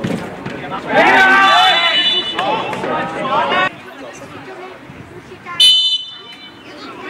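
A referee blows a whistle in short sharp blasts.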